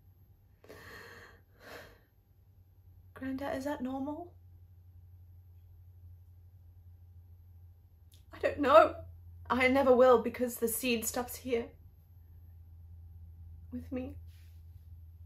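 A young woman speaks close by in a shaky, tearful voice.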